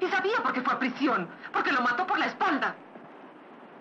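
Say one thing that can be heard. A young woman speaks urgently and close by.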